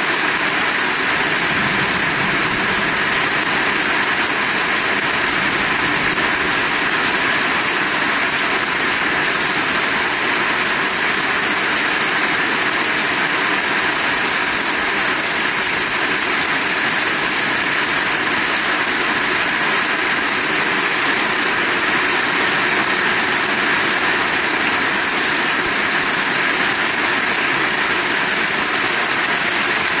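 Rainwater splashes off a metal roof edge onto the ground.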